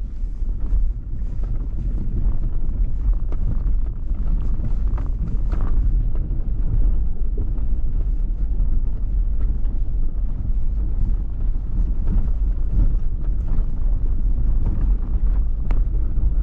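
Tyres crunch and rattle over gravel.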